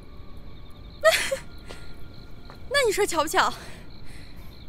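A young woman speaks playfully.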